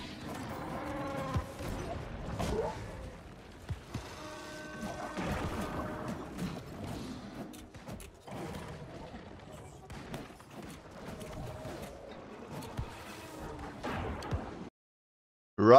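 Game combat sounds clash and crunch with heavy impacts.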